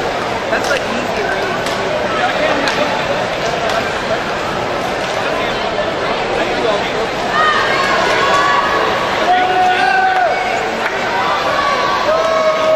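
Swimmers splash and kick through the water in an echoing indoor pool.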